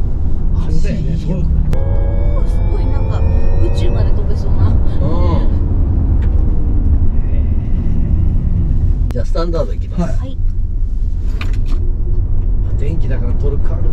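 Tyres and road noise rumble steadily inside a moving car.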